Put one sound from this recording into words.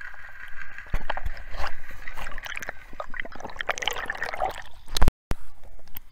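Air bubbles gurgle and rush past underwater.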